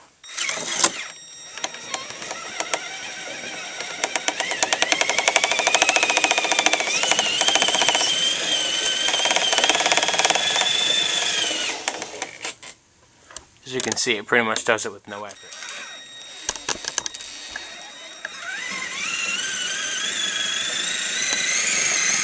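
The electric motor of a radio-controlled monster truck whines under load, rising in pitch.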